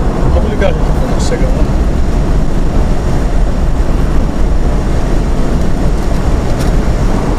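A car drives along a highway with a steady low rumble.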